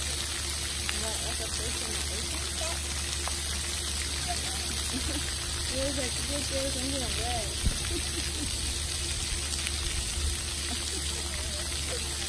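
Young children call out and shout in the distance.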